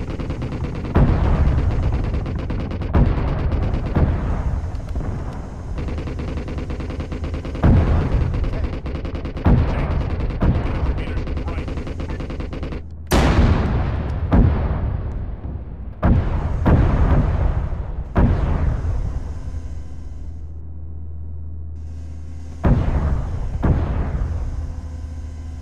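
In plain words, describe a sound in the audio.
Loud explosions boom again and again, each rolling away.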